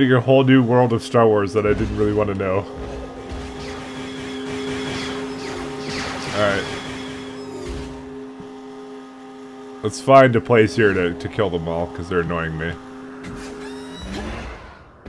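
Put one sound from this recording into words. A hover bike engine hums steadily as it speeds along.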